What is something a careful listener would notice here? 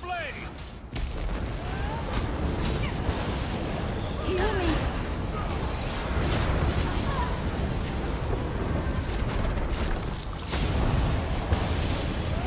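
Lightning crackles and booms in a loud fight.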